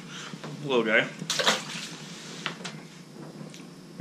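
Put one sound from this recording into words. A fish splashes into water.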